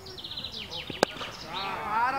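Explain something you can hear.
A cricket bat cracks sharply against a ball.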